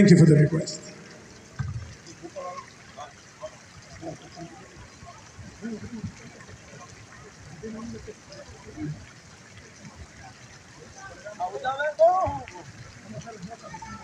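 A man plays an electric guitar.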